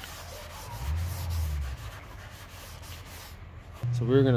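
Sandpaper rasps back and forth on a plastic surface.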